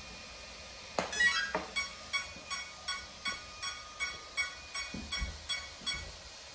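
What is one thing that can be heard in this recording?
An electronic motor controller beeps in a quick repeating series.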